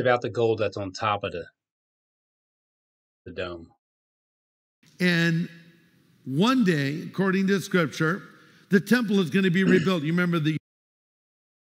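A man speaks with animation to an audience through a microphone.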